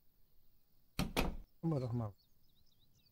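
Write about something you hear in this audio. A wooden door swings open and creaks.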